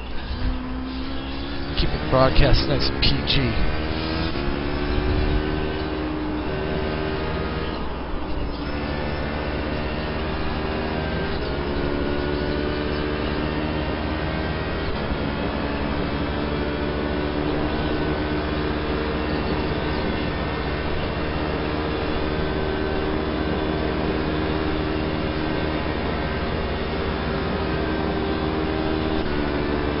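A racing car engine roars through loudspeakers, its pitch climbing and dropping with each gear change.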